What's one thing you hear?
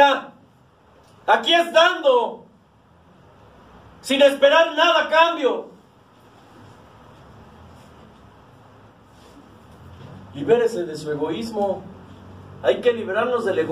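A middle-aged man speaks with emphasis through a microphone, in bursts with long pauses.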